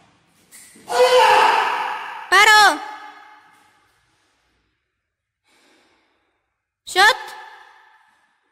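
A man shouts sharply in an echoing room.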